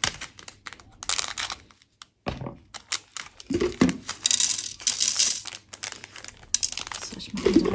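Plastic crinkles and rustles close by.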